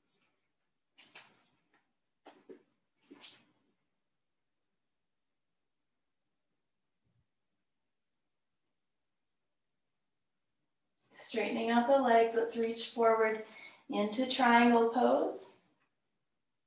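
A woman speaks calmly, as if giving instructions, close to a microphone.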